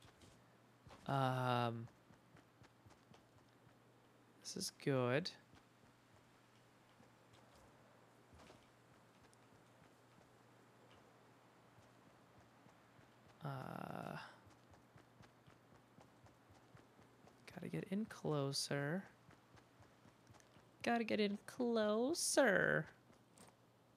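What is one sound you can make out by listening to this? A young man speaks in short bursts, with animation, close to a microphone.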